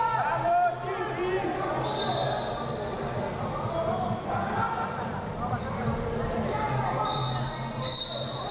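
Wrestling shoes squeak and thud on a mat.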